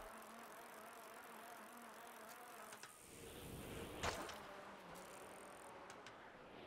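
Bicycle tyres roll over a hard surface.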